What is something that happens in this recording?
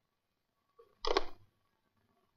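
A telephone receiver is set down with a clunk.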